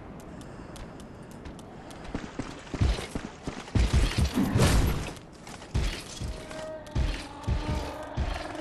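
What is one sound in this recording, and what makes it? Footsteps splash quickly through shallow water.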